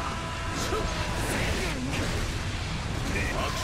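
A sword slashes and lands a sharp hit.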